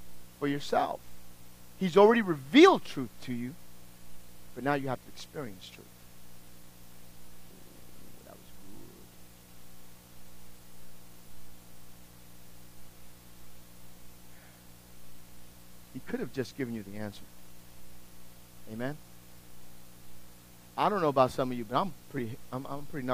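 A middle-aged man speaks with animation through a microphone, pausing at length between phrases.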